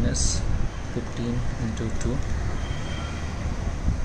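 Calculator keys click softly as they are pressed.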